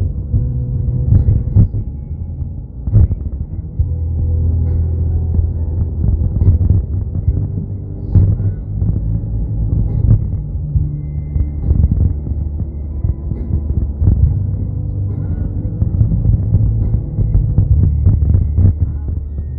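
A car engine hums steadily inside the cabin while driving.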